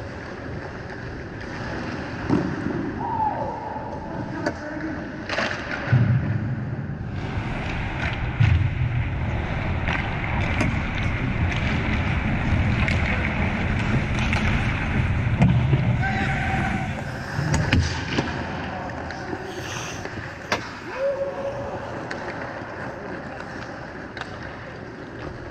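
Skates scrape and carve across the ice in a large echoing rink.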